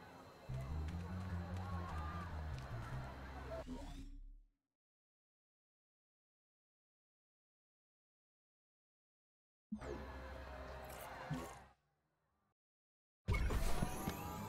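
A spaceship hums and whirs with electronic game sounds.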